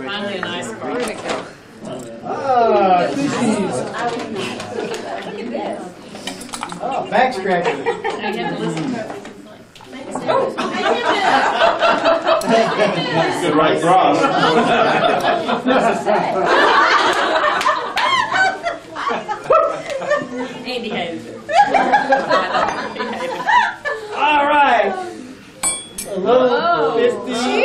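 A crowd of adults chatters and laughs in a room.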